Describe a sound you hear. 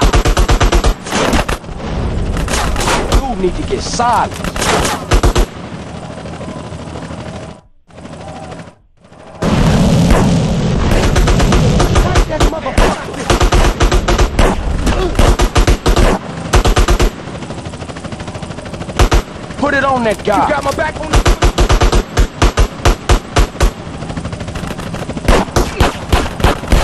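Rapid gunshots fire in repeated bursts.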